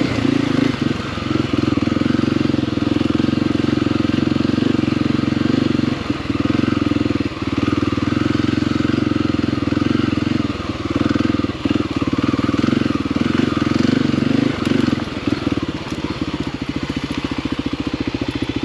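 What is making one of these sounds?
A motorcycle engine revs loudly up close, rising and falling with the throttle.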